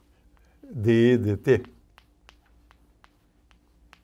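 Chalk scratches and taps on a board.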